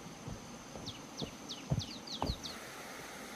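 Footsteps crunch on dry ground and leaves.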